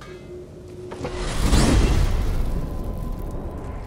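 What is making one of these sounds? A loud rushing whoosh swells up and fades away.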